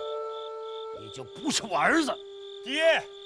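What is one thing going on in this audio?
A middle-aged man speaks forcefully up close.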